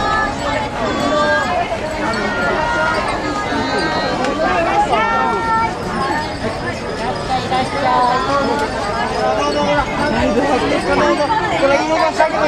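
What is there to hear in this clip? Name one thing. A crowd of women and men chatter nearby, close and lively.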